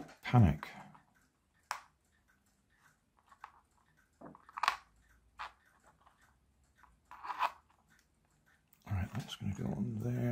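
Small plastic parts click and tap together as they are fitted.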